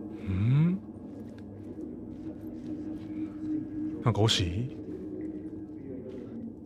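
A low eerie hum drones steadily.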